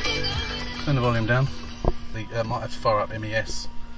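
A radio knob clicks as a hand turns it.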